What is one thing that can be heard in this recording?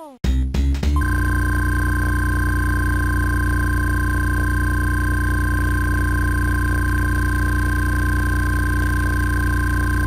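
Electronic game tones drone steadily.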